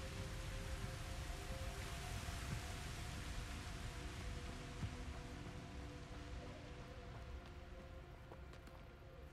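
Footsteps run quickly over grass and gravel.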